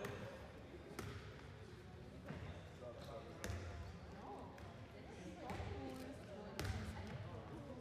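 A ball thuds on the floor.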